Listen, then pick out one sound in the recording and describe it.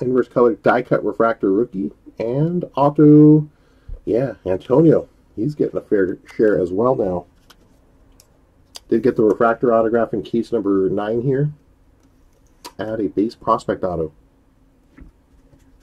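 Trading cards rustle and tap softly as they are handled.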